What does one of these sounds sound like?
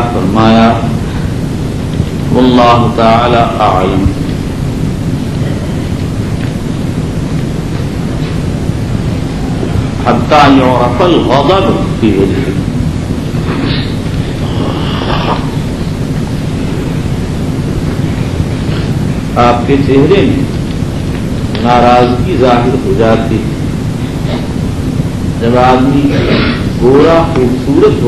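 An elderly man speaks calmly through a microphone, with long pauses.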